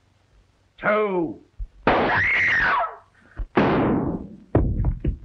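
A woman screams loudly in fright.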